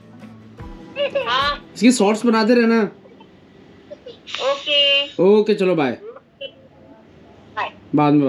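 A young woman talks warmly over a phone's speaker on a video call.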